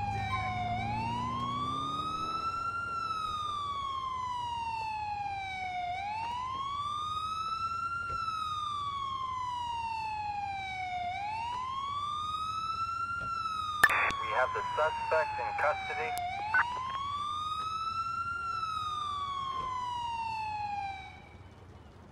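A police siren wails up and down close by.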